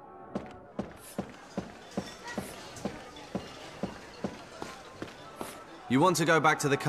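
Footsteps fall on a stone floor.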